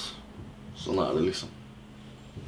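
A young man speaks briefly, close by.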